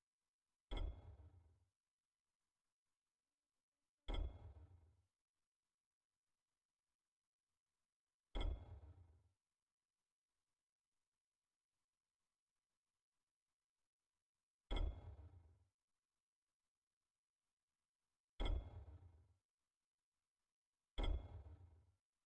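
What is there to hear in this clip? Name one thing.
A game menu chimes with a short, deep boom each time a selection changes.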